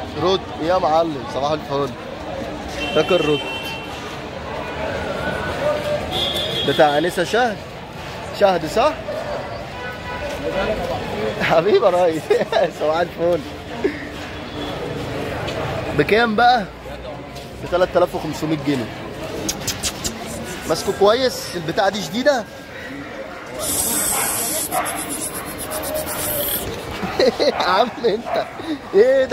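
A dog pants heavily nearby.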